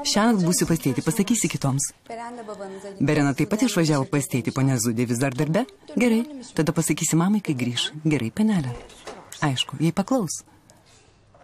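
A young woman answers calmly close by.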